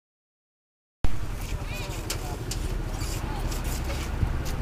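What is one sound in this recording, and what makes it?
A busy outdoor market bustles with murmuring voices and clatter.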